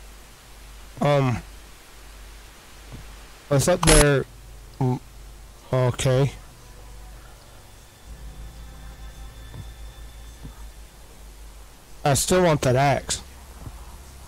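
A man talks into a close microphone with animation, in short bursts.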